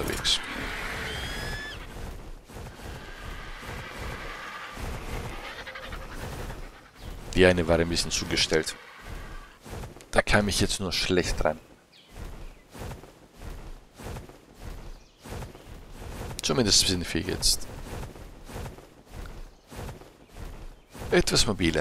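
Large wings flap with soft whooshing beats.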